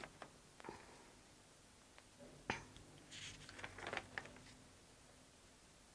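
Papers rustle softly.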